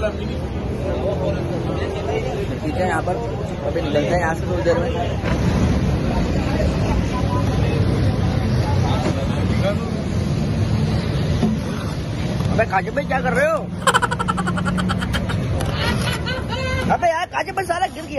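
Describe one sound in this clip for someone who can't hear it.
Traffic and street noise hum in the background outdoors.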